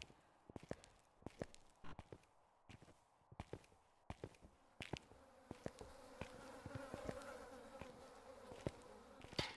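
Footsteps crunch slowly on a gritty floor.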